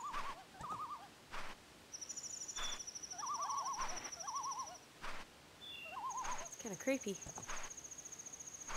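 A small fairy hums with a wavering, tinkling chime.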